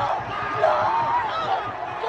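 A man close by shouts with excitement.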